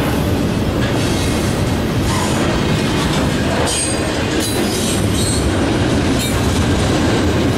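A freight train rumbles steadily past at close range.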